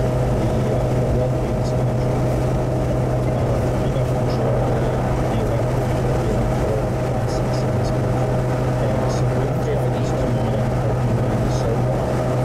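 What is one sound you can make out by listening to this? Tyres roar on the highway surface.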